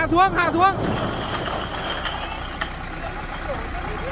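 Bricks clatter and tumble as they slide off a dump truck.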